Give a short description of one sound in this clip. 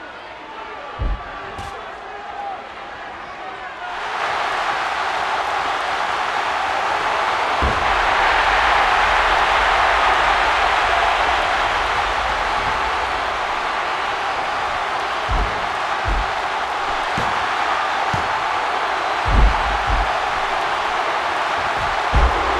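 Heavy thuds ring out as wrestlers slam onto the ring mat.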